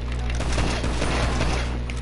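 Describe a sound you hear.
A pistol fires a single sharp shot.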